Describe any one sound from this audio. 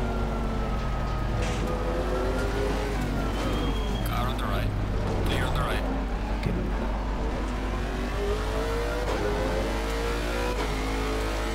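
A race car engine drones and revs up and down as the car shifts gears.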